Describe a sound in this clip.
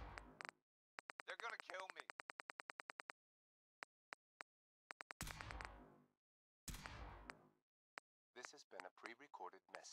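Menu clicks tick rapidly, one after another.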